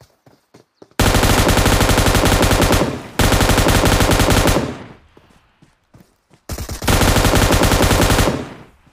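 A machine gun fires loud rapid bursts.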